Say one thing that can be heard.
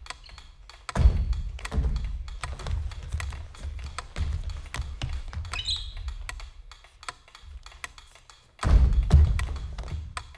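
Bodies bump and thump against a floor in falls.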